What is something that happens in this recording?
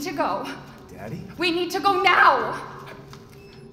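A young woman calls out in a trembling, frightened voice.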